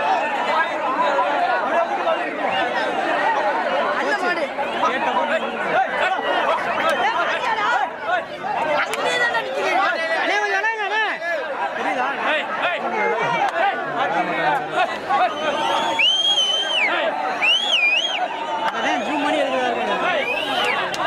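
A large crowd of men shouts and chatters excitedly outdoors nearby.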